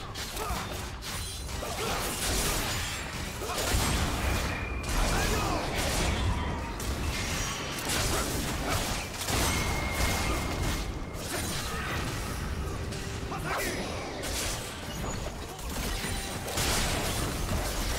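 Game characters clash with sharp hits.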